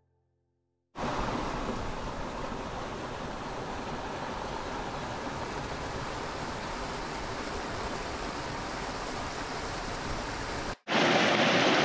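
A small cascade of water splashes over rocks.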